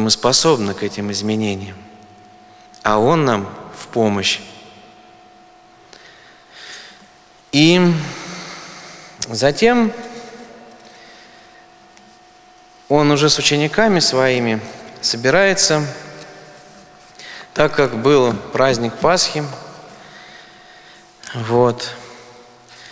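A man speaks steadily into a microphone, heard through a loudspeaker in an echoing hall.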